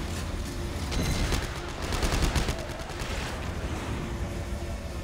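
A low rumbling hum fills the space.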